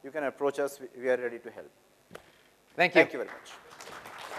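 A man speaks into a microphone in a large hall.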